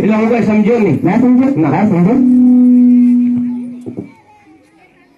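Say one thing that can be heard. A young man sings loudly into a microphone over a loudspeaker, ending on a long held note.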